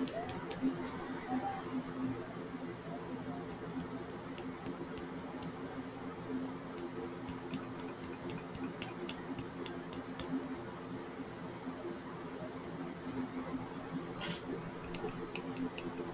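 Small clicks and taps of fingers working at a glass bottle.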